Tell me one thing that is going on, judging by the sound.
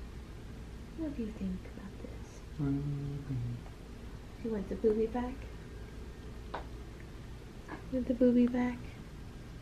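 A young woman speaks softly and sweetly nearby.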